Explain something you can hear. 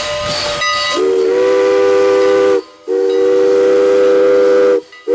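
A steam locomotive's whistle blows two long, loud blasts.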